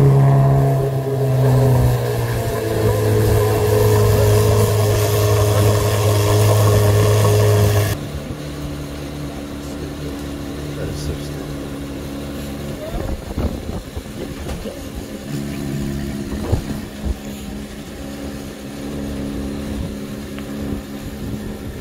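A powerful car engine rumbles loudly.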